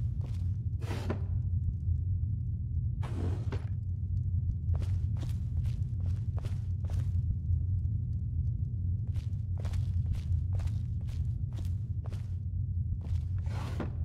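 Footsteps fall on a stone floor.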